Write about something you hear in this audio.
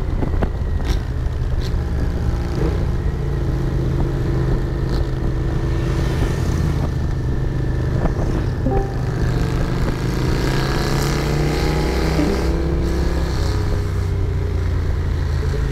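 A motorcycle engine rumbles steadily up close, its pitch rising and falling with the throttle.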